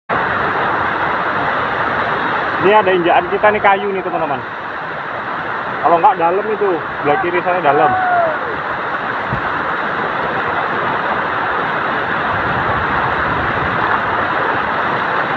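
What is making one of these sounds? Wind rushes steadily over the microphone outdoors.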